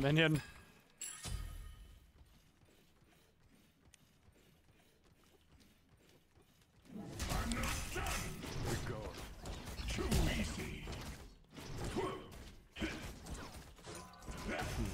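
Game spell effects whoosh and clash.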